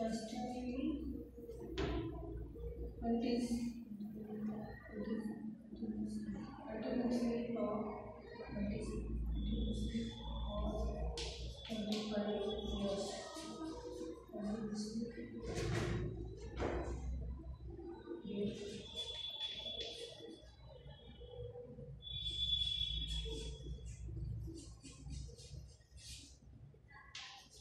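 A woman speaks calmly, like a teacher explaining.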